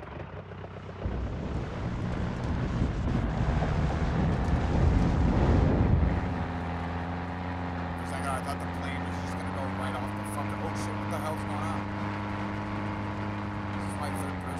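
A plane's engine roars loudly, then settles into a steady drone.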